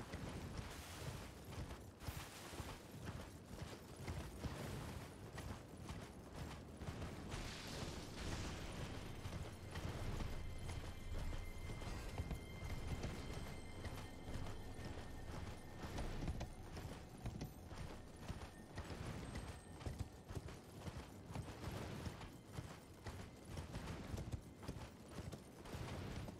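Hooves gallop steadily over snow.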